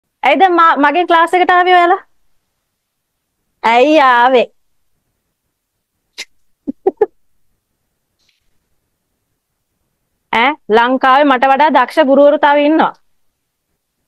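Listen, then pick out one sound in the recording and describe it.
A young woman speaks calmly and warmly into a close microphone.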